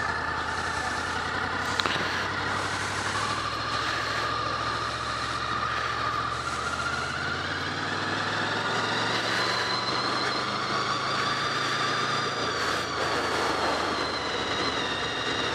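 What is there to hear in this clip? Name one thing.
A motorcycle engine hums steadily close by, its pitch rising and falling as it rides.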